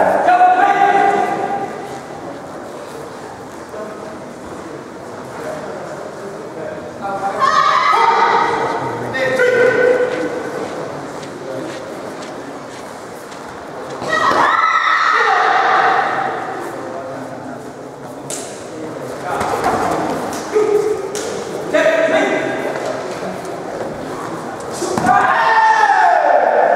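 A man shouts loudly in a large echoing hall.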